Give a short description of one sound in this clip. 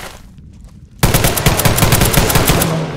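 A machine gun fires a rapid, loud burst.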